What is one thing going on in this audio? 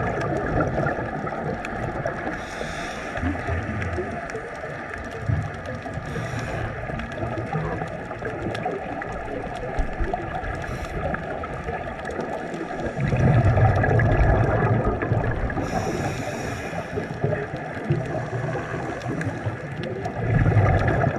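Water crackles and hisses steadily all around, muffled as if heard underwater.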